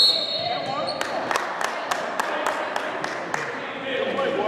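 A basketball bounces on a hard wooden floor.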